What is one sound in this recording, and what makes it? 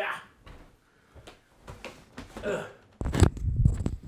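Plastic cases clatter as they are handled.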